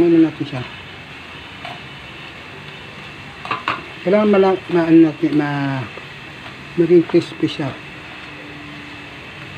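Metal tongs clink against a metal pot.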